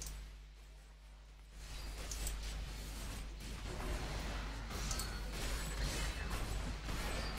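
Magic spells burst and crackle.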